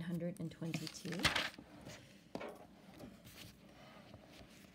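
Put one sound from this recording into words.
Pages of a book rustle as they are turned.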